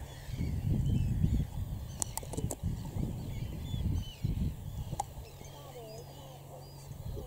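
A flock of birds chirps and twitters overhead.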